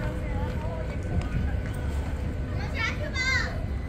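People chatter faintly in the distance.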